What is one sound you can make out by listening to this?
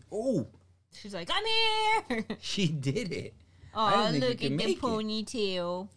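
A woman laughs close to a microphone.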